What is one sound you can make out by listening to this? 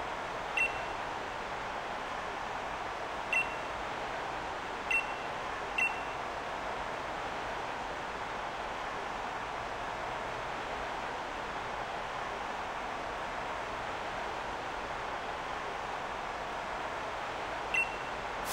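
A short electronic chime sounds each time a game's dialogue advances.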